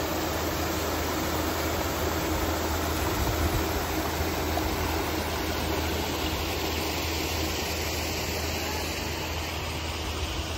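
A paddle wheel churns and splashes water loudly.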